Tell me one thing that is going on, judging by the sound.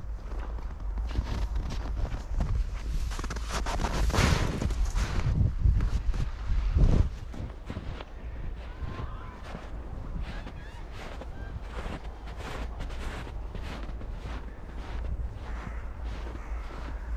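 Footsteps crunch through dry snow close by.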